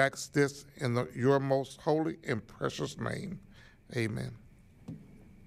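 A man speaks slowly and solemnly into a microphone in a large room.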